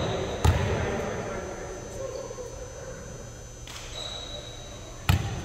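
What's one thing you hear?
A volleyball thumps off a player's hands in a large echoing gym.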